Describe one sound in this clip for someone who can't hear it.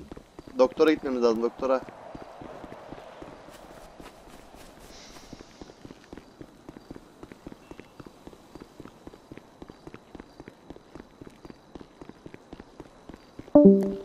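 Quick footsteps run on pavement.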